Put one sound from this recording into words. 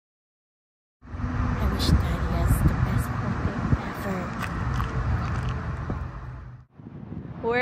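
A young girl speaks calmly outdoors.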